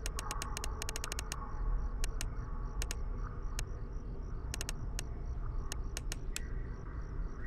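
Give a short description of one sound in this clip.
A flashlight switch clicks on and off rapidly.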